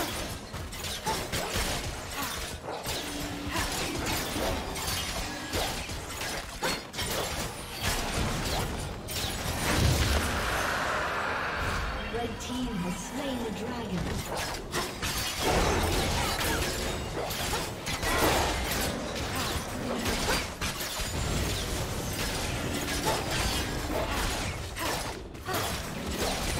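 Game combat effects crackle, whoosh and thud as fighters clash.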